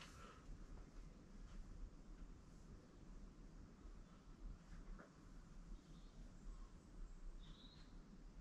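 A pen scratches faintly on a wall.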